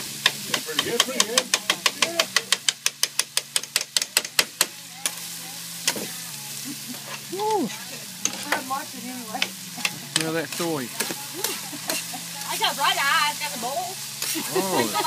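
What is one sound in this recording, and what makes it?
Food sizzles on a griddle.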